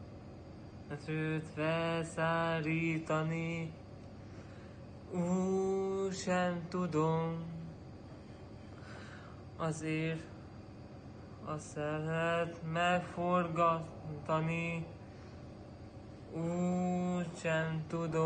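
A young man sings close by in short phrases.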